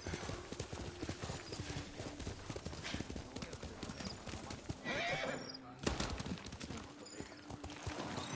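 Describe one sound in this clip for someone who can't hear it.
Horse hooves thud steadily on the ground.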